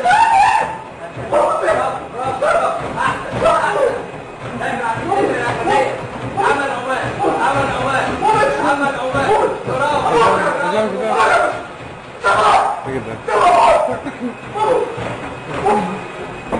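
Feet thud quickly on a moving treadmill belt.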